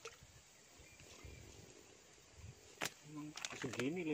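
Water splashes as a fish is pulled from a puddle.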